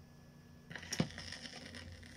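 A stylus drops onto a spinning vinyl record with a soft thump.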